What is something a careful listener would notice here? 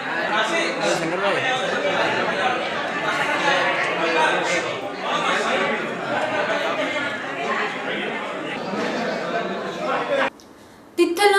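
A crowd of people chatter in a busy room.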